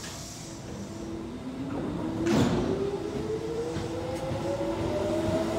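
An electric train's motor whines, rising steadily in pitch as the train pulls away.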